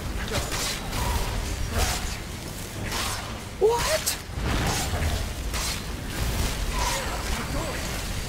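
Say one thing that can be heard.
Fire spells roar and crackle in bursts.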